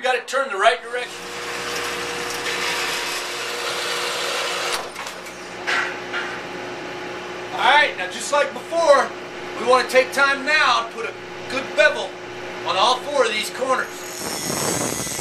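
A band saw hums steadily as it cuts through metal.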